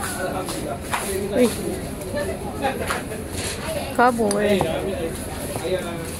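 Glass bottles clink together as a hand moves them.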